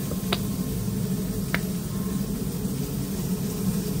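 A squeeze bottle squirts sauce with a soft splutter.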